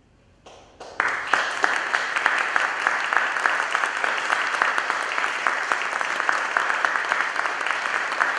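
An audience applauds in a hall that echoes.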